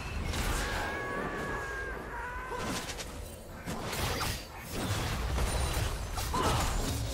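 Fantasy spell blasts and weapon clashes ring out in quick bursts.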